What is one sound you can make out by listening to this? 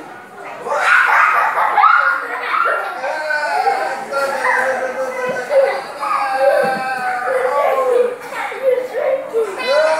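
A little girl squeals and babbles excitedly nearby.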